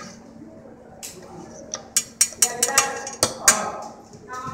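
Metal objects click and tap against each other.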